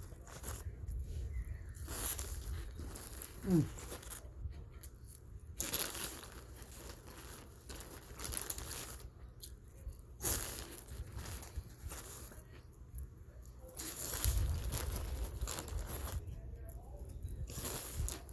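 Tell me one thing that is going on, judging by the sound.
A woman crunches on crunchy snacks close by.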